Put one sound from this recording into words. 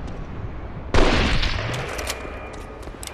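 A rifle shot bangs and echoes down a tunnel.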